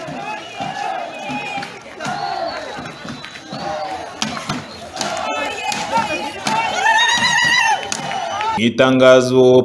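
A crowd of people shouts and chatters outdoors.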